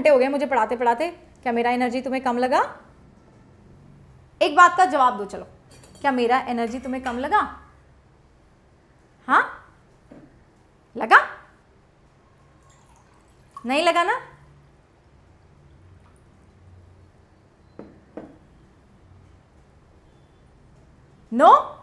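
A young woman speaks calmly and close into a microphone, in short bursts with pauses.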